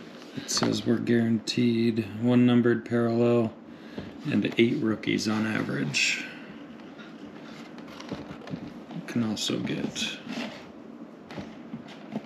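Hands turn a cardboard box over.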